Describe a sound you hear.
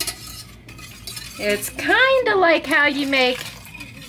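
Milk pours from a metal cup into a pan.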